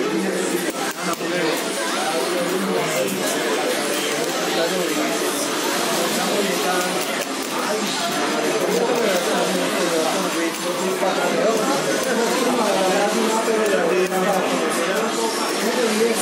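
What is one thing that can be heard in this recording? Arcade buttons click and a joystick rattles.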